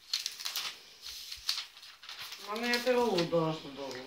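Notebook pages rustle as they are turned.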